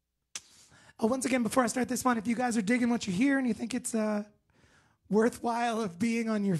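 A man sings loudly and close into a microphone.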